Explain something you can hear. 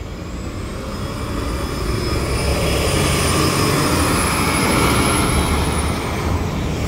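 A city bus drives past close by with a loud engine roar.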